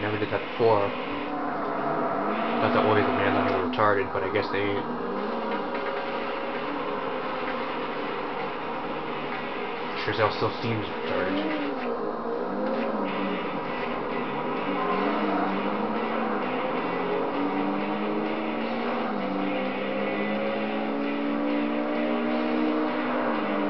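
A racing car engine roars and revs up and down through its gears.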